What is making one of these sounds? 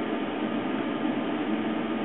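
An arc welder crackles briefly.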